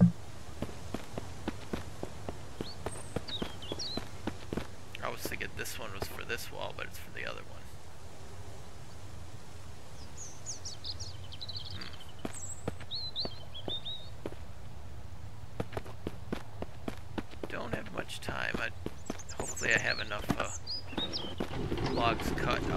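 Footsteps crunch on dry leaves and gravel.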